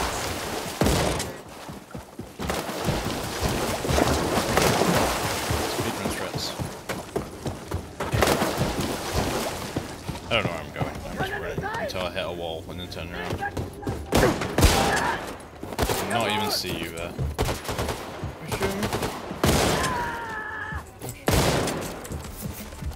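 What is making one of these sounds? A machine gun fires rapid bursts of shots.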